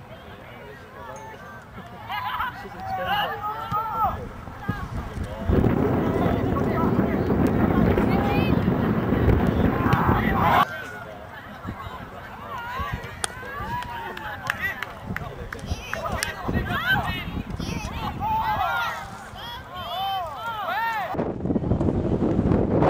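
Spectators nearby shout and call out with excitement.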